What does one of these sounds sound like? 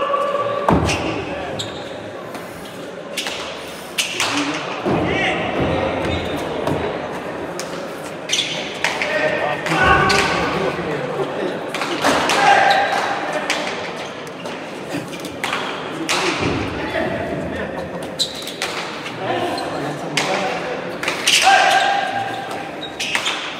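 A hard ball smacks against walls and gloves, echoing sharply through a large hall.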